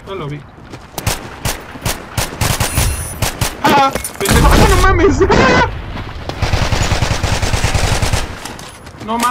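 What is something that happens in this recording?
Rapid gunfire bursts from a game.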